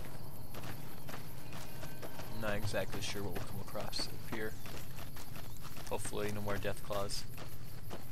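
Footsteps crunch on dry gravel.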